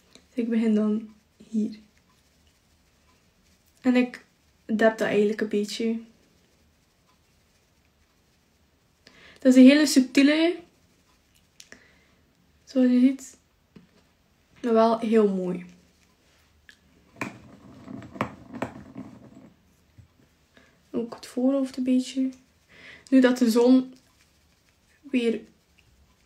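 A makeup brush brushes softly against skin.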